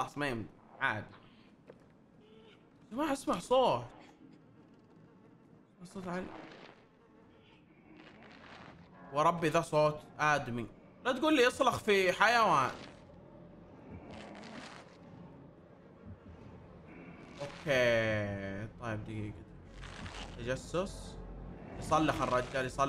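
A young man talks with animation into a close microphone, now and then exclaiming loudly.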